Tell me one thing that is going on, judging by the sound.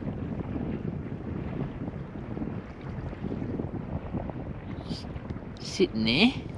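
Water rumbles and swirls with a low, muffled underwater sound.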